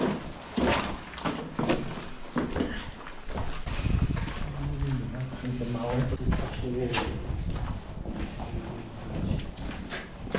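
Footsteps crunch over loose rubble and debris.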